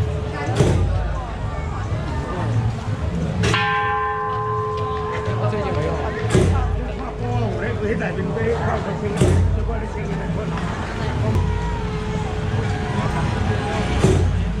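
Firecrackers bang loudly, one at a time, in the street.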